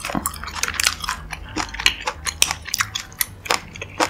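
Chopsticks tap and stir in a pan of thick sauce.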